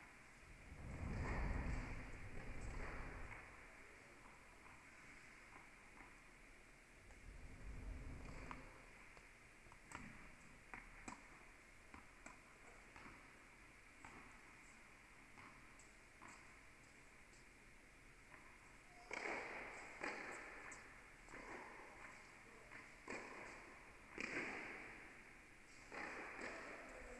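Tennis balls are struck with rackets, echoing in a large indoor hall.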